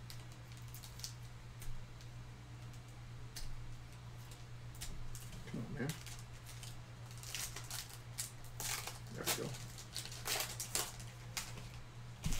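Foil wrapping tears open with a crackle.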